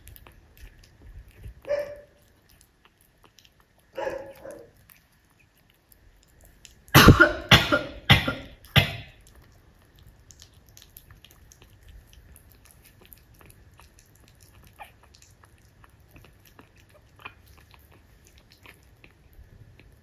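A puppy laps and chews food noisily from a bowl.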